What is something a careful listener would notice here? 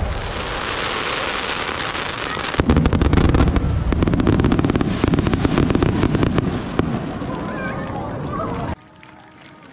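Fireworks explode with deep booms overhead.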